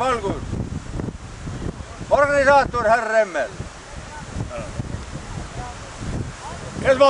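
A man shouts loudly nearby outdoors.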